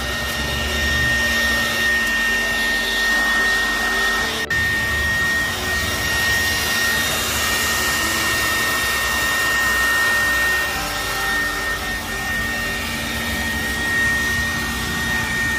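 A vacuum cleaner whines steadily and loudly close by.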